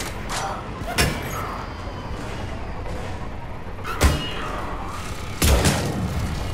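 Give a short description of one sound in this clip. A sniper rifle fires with a sharp, booming crack.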